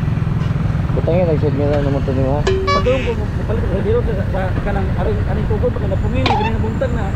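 A man talks nearby in a casual way.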